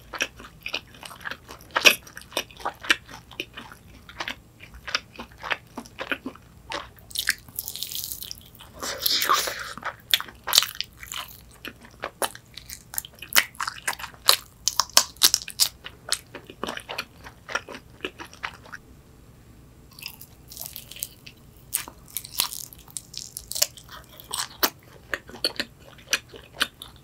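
A young woman chews crunchy fried food loudly and close to a microphone.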